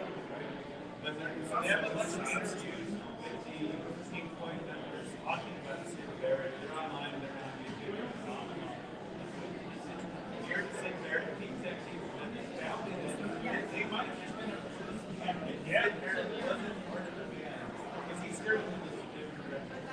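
Men and women chatter indistinctly around the room.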